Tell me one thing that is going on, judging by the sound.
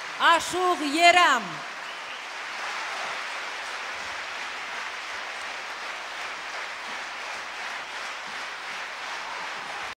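A large audience applauds steadily in an echoing hall.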